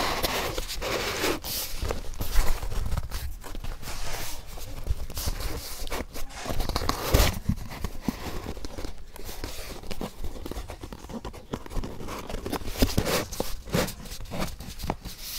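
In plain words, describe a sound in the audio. Fingers rub and tap against a cardboard box close up.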